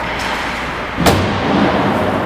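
A puck smacks sharply against a stick or the boards.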